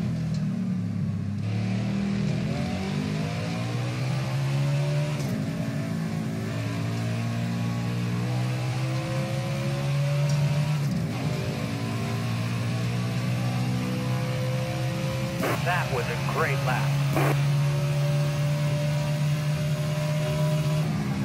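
A race car engine roars and climbs in pitch, dropping briefly with each gear change.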